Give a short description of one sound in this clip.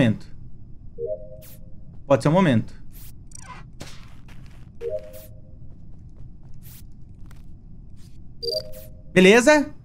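Short electronic chimes ring out from a game.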